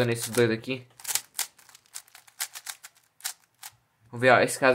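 A puzzle cube clicks and clacks as its layers are turned quickly.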